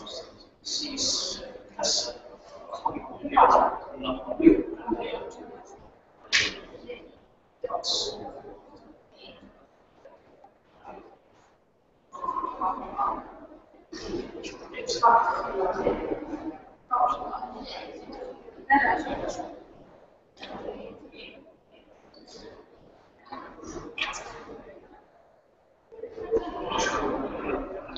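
A man talks calmly at a distance in a large echoing hall.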